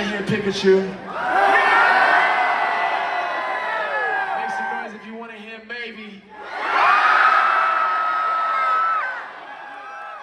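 A young woman sings into a microphone in a large hall.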